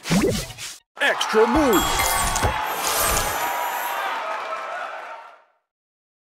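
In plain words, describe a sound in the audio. A cheerful jingle plays as the game announces a bonus.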